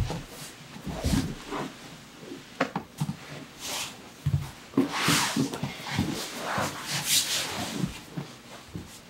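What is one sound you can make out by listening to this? Cloth rustles as two men grapple.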